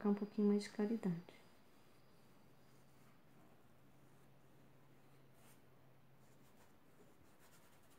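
A pencil softly scratches on paper.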